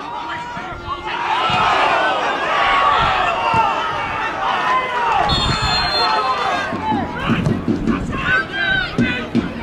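Men on the pitch shout to one another from a distance.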